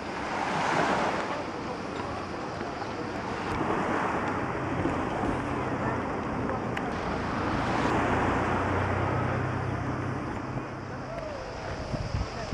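Small waves wash gently onto a pebble shore.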